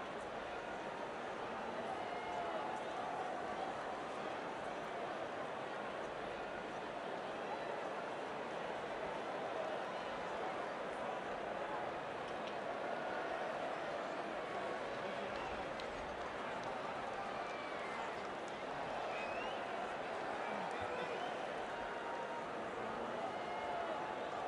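A large stadium crowd murmurs and cheers steadily throughout.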